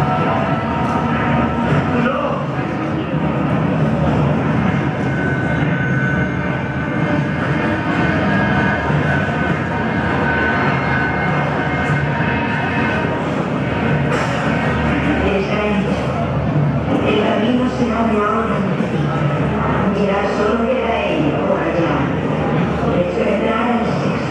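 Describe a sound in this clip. Music plays loudly through loudspeakers in a large echoing hall.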